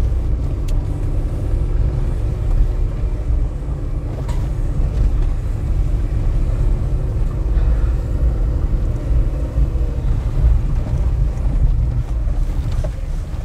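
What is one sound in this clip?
A vehicle engine rumbles low and steady while driving slowly.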